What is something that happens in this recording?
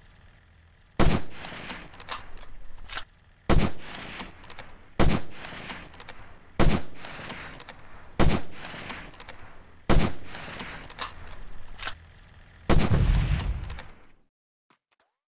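A rifle fires sharp shots one after another, each echoing away.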